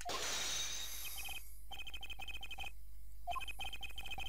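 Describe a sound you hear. Rapid electronic blips tick in a quick, even rhythm.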